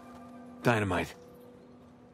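A man speaks briefly in a calm voice.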